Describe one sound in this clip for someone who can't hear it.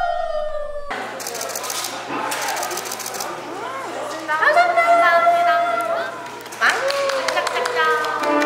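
Two young women talk and giggle playfully close by.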